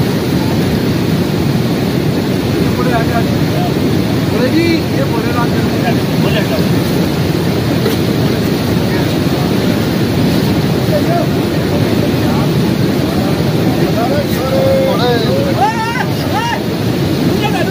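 A river rushes loudly nearby.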